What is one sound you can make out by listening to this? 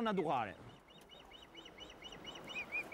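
Young birds cheep in a nest with short, repeated high calls.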